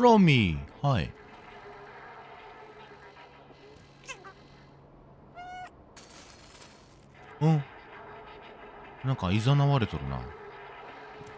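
A cat meows loudly several times.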